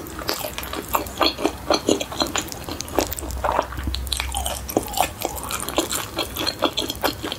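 A young woman chews crunchy food loudly and wetly, close to a microphone.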